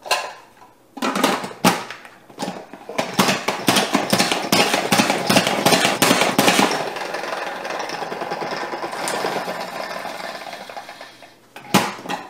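A salad spinner clicks and whirs as it is pumped, then spins down.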